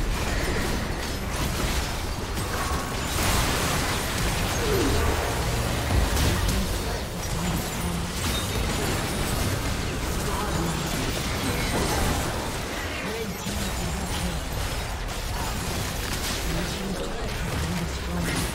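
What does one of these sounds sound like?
Game spell effects crackle and blast during a fight.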